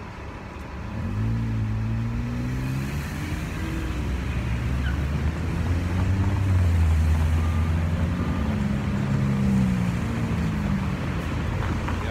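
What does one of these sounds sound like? Cars and a heavy engine rumble past on a nearby street.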